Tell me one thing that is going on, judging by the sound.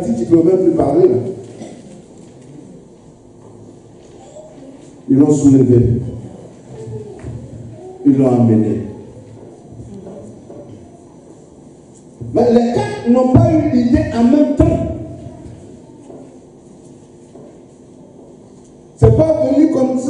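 A man preaches with animation into a microphone, in bursts with long pauses, in an echoing hall.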